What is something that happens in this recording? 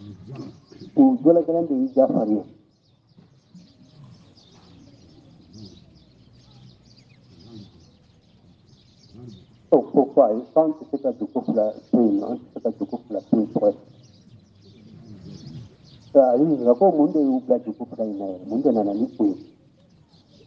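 An elderly man chants loudly in short bursts.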